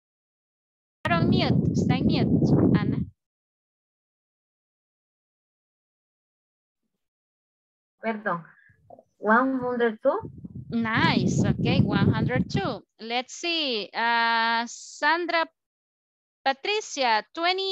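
A woman speaks clearly and slowly over an online call, pausing between phrases.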